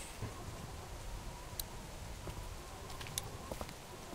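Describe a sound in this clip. A man's footsteps thud softly on a wooden floor.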